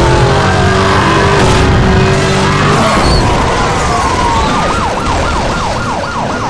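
A car crashes and tumbles with a loud smash.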